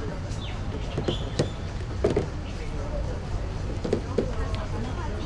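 Small objects knock and clatter on a table close by.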